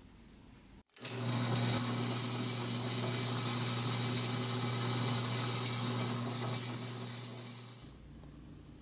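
A drill press spins with a steady hum.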